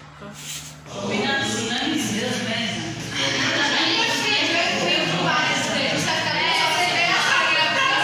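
A group of people talk and chatter in a room.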